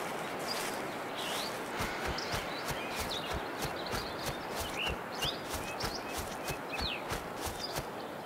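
Footsteps crunch on a dirt path.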